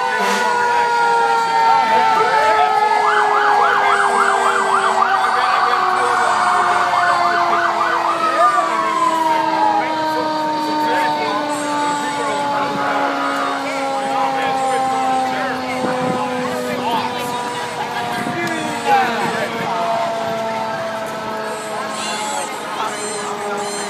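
A siren wails steadily, slowly falling in pitch.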